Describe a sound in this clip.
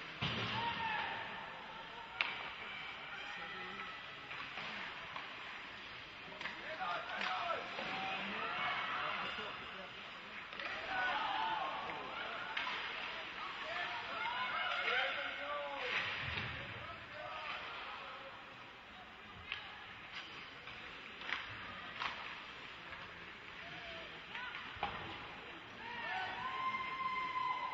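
A crowd of spectators chatters and calls out in an echoing arena.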